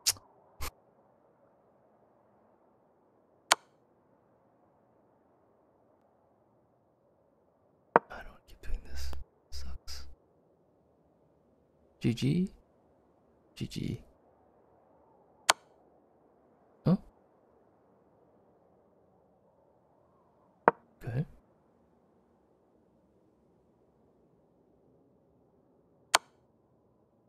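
Chess pieces click sharply as moves are made.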